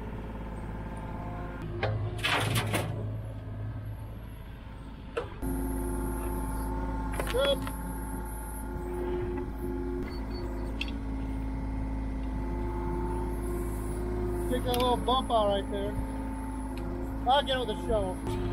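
An excavator engine hums steadily close by.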